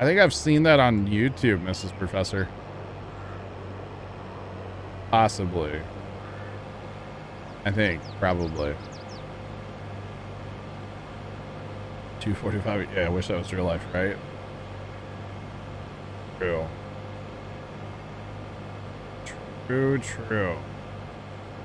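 A young man talks calmly into a close microphone, in short bursts.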